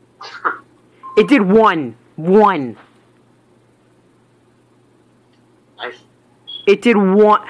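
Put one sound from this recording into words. Short electronic menu beeps sound from a handheld game.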